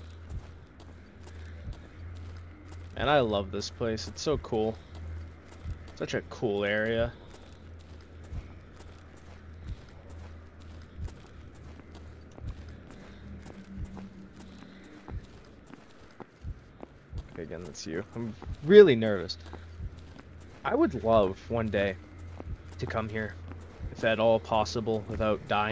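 Footsteps tread steadily on hard paving.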